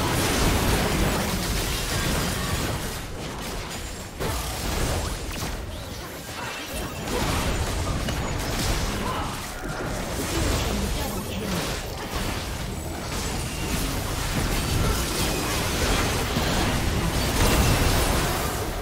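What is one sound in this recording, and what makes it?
Magic spells crackle and blast in a fast, busy fight.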